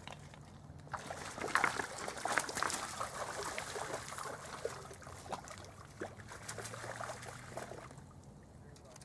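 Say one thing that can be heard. A fish splashes and thrashes in shallow water close by.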